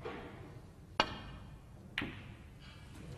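Snooker balls click together.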